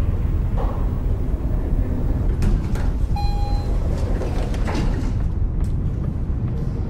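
An elevator hums and rumbles steadily.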